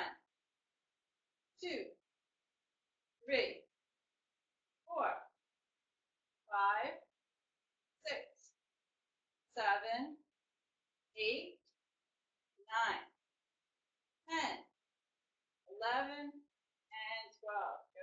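A woman counts out loud in short, regular bursts, close by.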